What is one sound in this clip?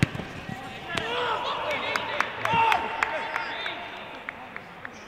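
Male players shout and call out across a large, empty echoing stadium.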